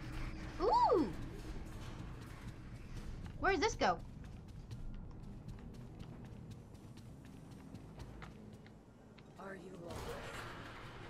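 A young girl speaks with excitement into a microphone, with short high cries.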